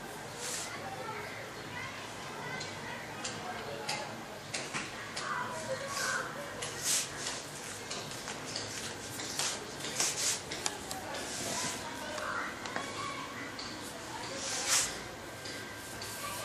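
A paintbrush swishes softly across paper.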